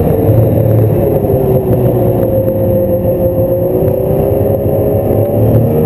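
A snowmobile engine drones steadily and rises and falls with speed.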